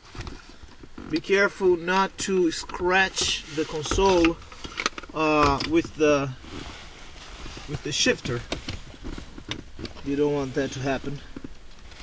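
Plastic trim clicks and rattles as hands pull it loose.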